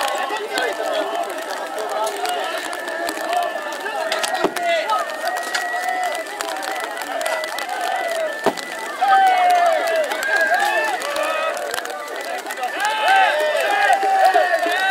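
A crowd of men shouts and cheers loudly outdoors.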